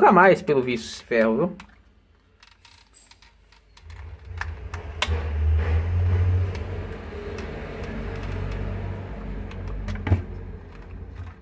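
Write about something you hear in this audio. Plastic parts click and creak as they are pried apart.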